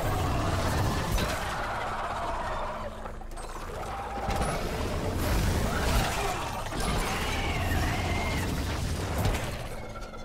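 Flames roar and burst in loud explosions.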